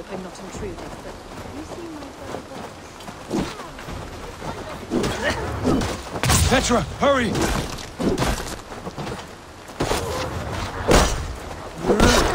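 Wolves snarl and growl.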